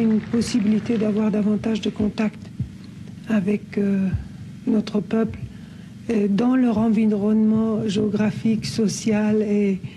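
A middle-aged woman speaks calmly and close.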